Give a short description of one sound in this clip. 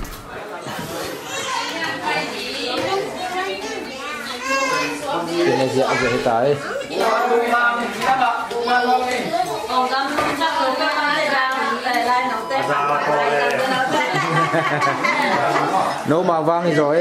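Several men and women chat and laugh together close by.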